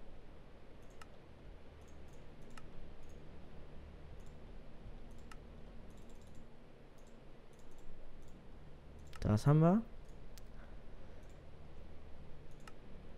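Short menu clicks sound now and then.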